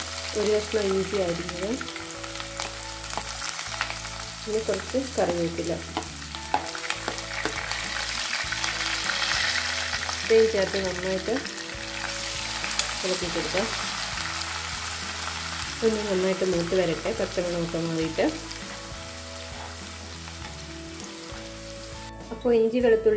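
Hot oil sizzles in a pan.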